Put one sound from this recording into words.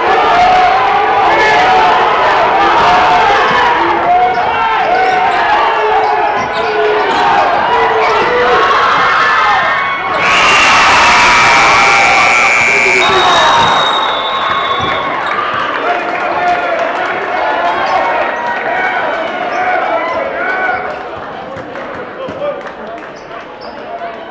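A crowd cheers and shouts loudly in a large echoing gym.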